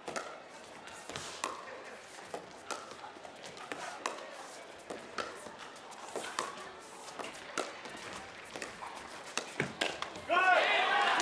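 Paddles strike a plastic ball in a quick back-and-forth rally.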